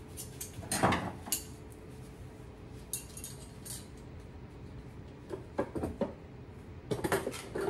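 Metal cutlery clatters as a hand rummages through a drawer.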